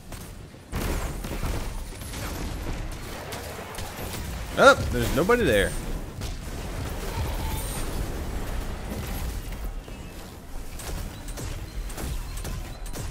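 Video game gunfire and blasts play steadily throughout.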